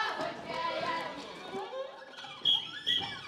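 Young women's voices ring out together.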